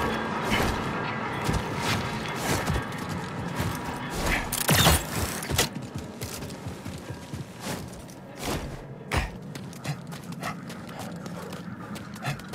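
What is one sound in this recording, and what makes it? Hands and boots scrape and thud against rock during a climb.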